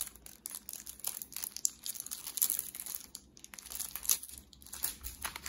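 Paper banknotes rustle and flick as a hand riffles through a stack.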